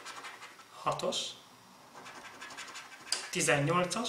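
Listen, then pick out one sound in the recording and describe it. A fingernail scratches at a card.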